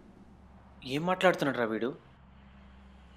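A young man speaks calmly in reply.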